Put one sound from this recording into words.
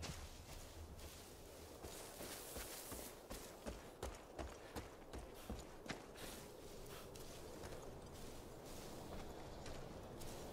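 Footsteps crunch over grass and gravel.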